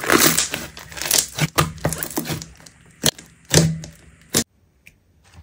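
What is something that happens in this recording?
Hands squish and squeeze thick dough with sticky crackles.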